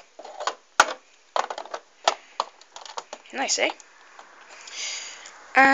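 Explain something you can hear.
Plastic toy bricks click and rattle under fingers.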